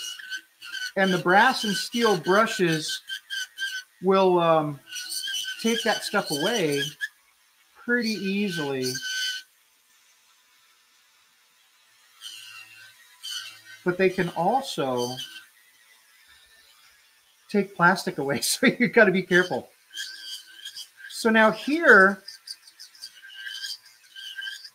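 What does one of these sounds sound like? A small rotary tool whirs as it grinds a figure.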